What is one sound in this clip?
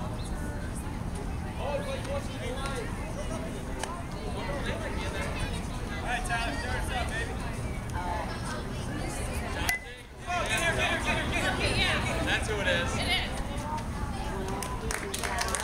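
Young players call out across an outdoor field.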